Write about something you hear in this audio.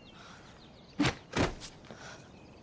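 Feet thud on the ground as someone jumps down.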